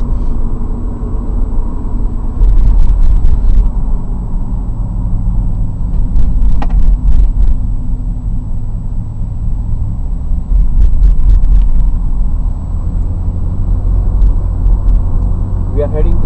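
A car engine rumbles steadily from inside a moving vehicle.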